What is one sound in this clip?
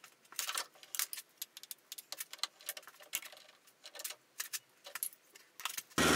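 Metal parts clink as they are handled.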